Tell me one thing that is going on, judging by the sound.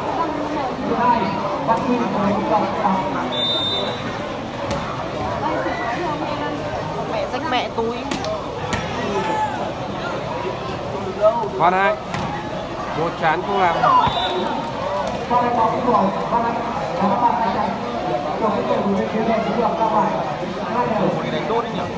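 A large crowd chatters and cheers loudly outdoors.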